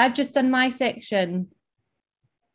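A young woman speaks calmly through a microphone on an online call.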